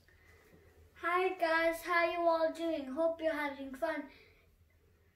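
A young girl sings close by.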